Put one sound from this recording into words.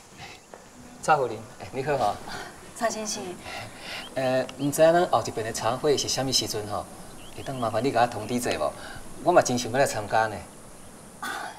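A middle-aged man speaks politely up close.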